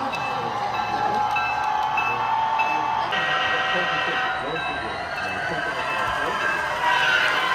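A level crossing bell rings in a steady, quick beat.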